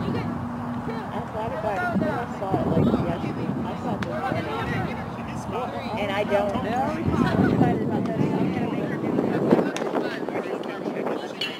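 Young women chant and call out loudly outdoors.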